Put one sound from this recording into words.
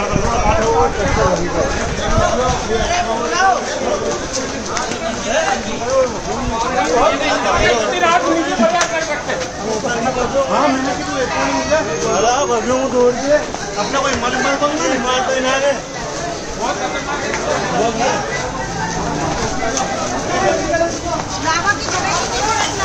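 A crowd of men shout and talk excitedly outdoors.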